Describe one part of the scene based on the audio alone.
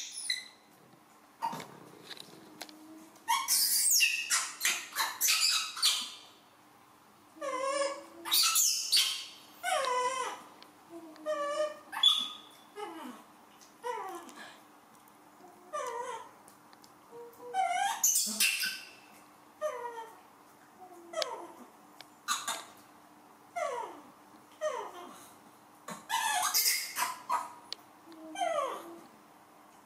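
A young monkey screams and cries loudly, over and over.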